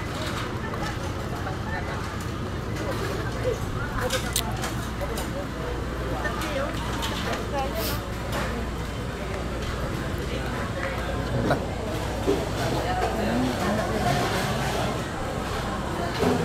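Voices of people murmur in the background outdoors.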